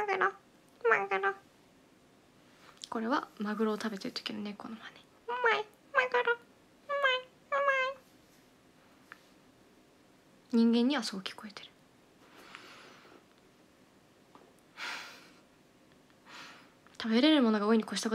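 A young woman speaks softly and playfully close to a microphone, in short bursts with pauses.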